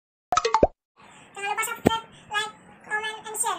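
A young boy talks eagerly, close by.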